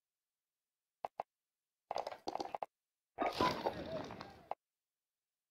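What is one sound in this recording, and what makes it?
Short electronic menu clicks sound.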